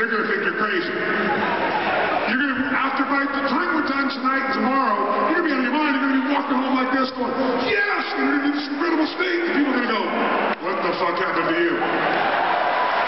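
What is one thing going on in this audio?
A man speaks with energy through a microphone.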